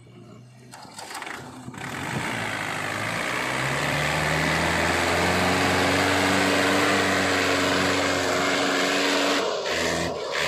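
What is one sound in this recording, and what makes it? A tractor engine revs hard and roars, rising in pitch as it strains.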